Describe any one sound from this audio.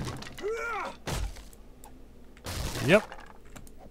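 Wooden boards crack and splinter as they are struck.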